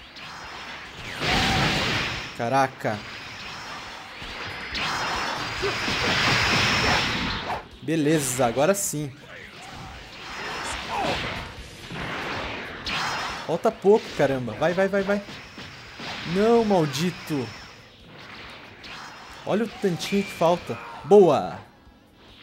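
Energy blasts roar and whoosh in bursts.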